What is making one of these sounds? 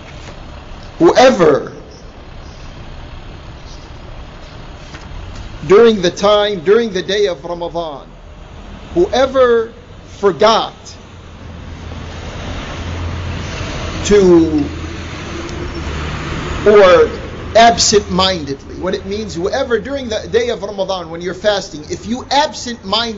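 An elderly man speaks slowly and calmly into a microphone, heard through loudspeakers in a large room.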